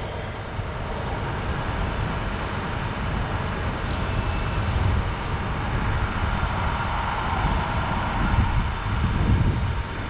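Strong wind blows and buffets outdoors.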